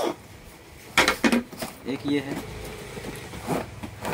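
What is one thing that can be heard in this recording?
A cardboard box scrapes and rustles as it is handled.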